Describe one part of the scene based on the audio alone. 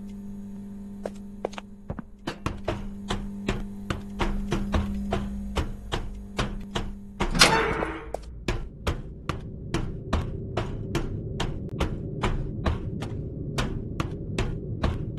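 Footsteps clang on a metal walkway at a steady pace.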